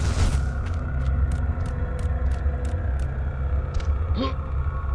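Footsteps tap on a stone floor.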